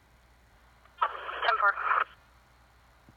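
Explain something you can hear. A radio receiver plays a short, tinny burst of a transmission through its small speaker.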